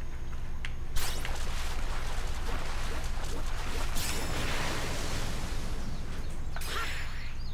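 Water splashes and roars as a huge fish bursts out of it.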